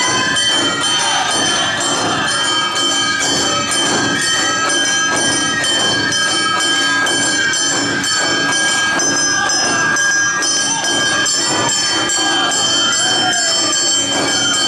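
Performers chant loudly together.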